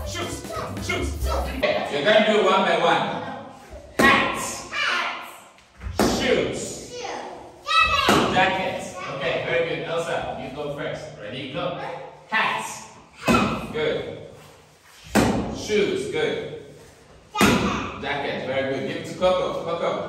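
A man speaks to young children in a lively, teaching voice, in a room with some echo.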